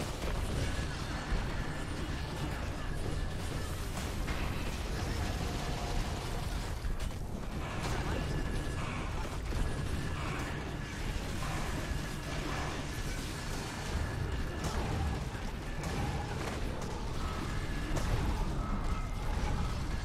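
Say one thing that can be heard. Game combat effects whoosh, clash and burst over and over.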